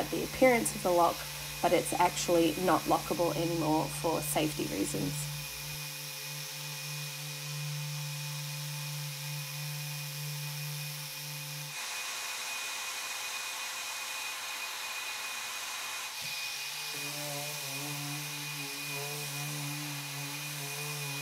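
An electric sander hums steadily against wood.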